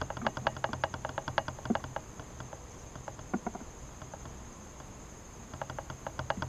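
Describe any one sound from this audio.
A hive tool knocks and scrapes against wooden frames.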